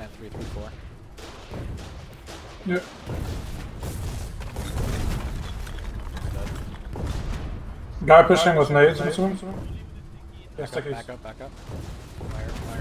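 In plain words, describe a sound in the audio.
Tank guns fire with deep booms.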